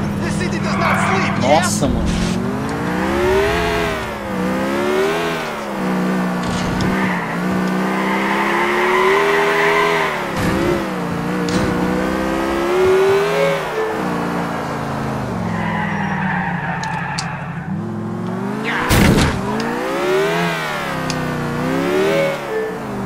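A sports car engine revs up and down as it speeds through the streets.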